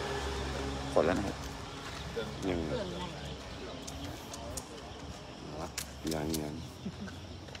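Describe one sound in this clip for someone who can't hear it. Young men talk and call out to each other outdoors at night.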